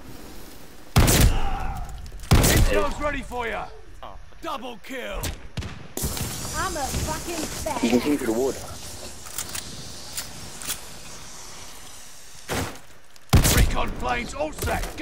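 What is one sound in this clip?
Gunshots blast in short, loud bursts.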